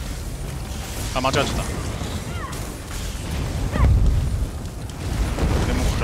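Magic spells crackle and boom during a fight.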